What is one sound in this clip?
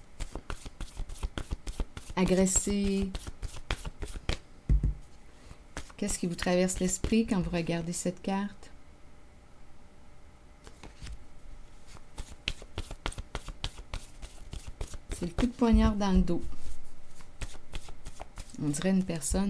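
Cards riffle and flap as a deck is shuffled by hand.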